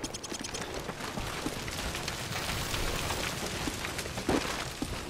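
A loud explosion booms and roars nearby.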